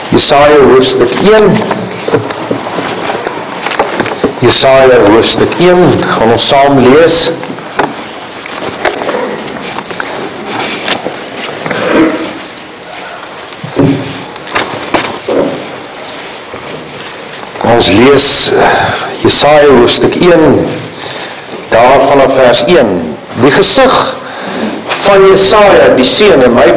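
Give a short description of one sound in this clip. A middle-aged man speaks steadily into a microphone, heard through loudspeakers in a large echoing hall.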